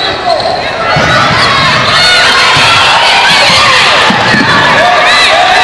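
Spectators cheer and shout loudly.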